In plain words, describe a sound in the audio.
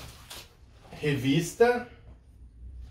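A man speaks briefly and with animation, close by.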